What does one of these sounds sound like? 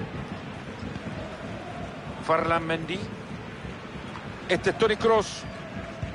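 A stadium crowd murmurs steadily in the background.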